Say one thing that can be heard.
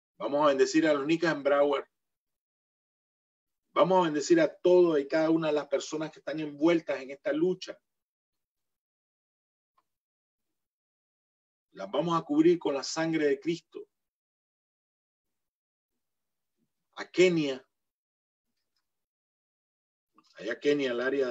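A middle-aged man speaks calmly in bursts with pauses, heard through an online call.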